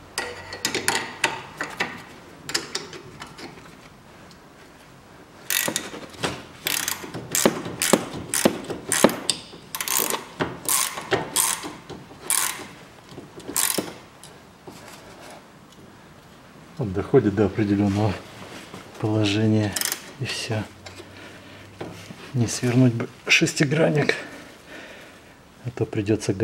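A wrench clicks and clanks against metal bolts.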